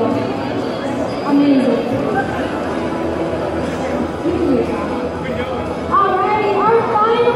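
A large crowd chatters and shouts in a big echoing gym.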